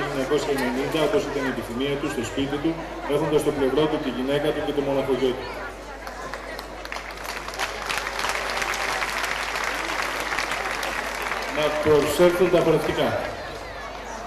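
A man speaks with animation through a microphone, heard over loudspeakers in a roomy space.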